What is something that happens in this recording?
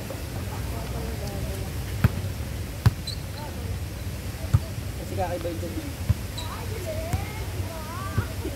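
Young people call out to each other during play.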